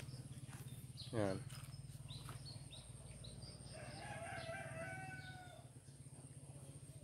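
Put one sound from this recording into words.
A young man speaks calmly close to the microphone.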